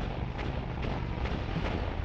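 A loud explosion bursts.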